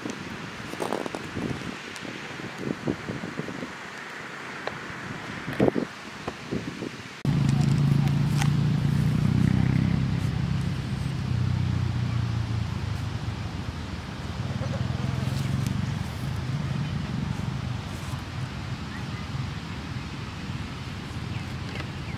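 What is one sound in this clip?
A goat tears and chews grass close by.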